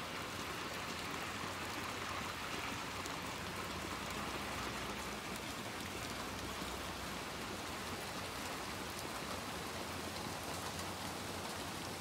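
Small footsteps patter quickly across the ground.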